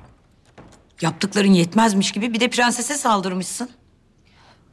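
A woman speaks firmly and sternly, close by.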